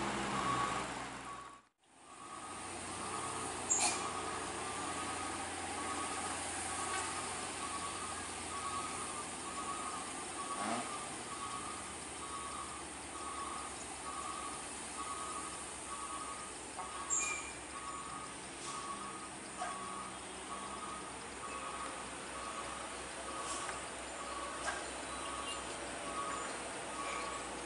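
Car and truck engines idle and hum in slow traffic.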